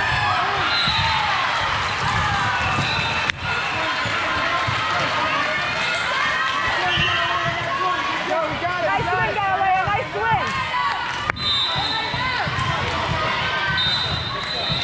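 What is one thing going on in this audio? Many girls chatter and call out in a large echoing hall.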